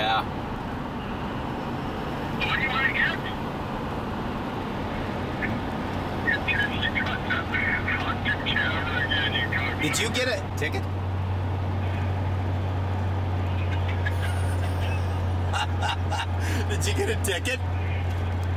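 A car engine hums steadily as it drives along a highway.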